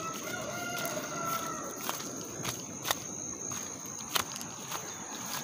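Footsteps thud softly on wet grass.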